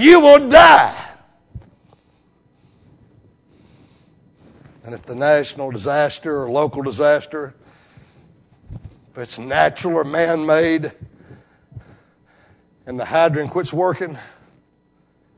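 A middle-aged man preaches with animation into a microphone, pausing between phrases.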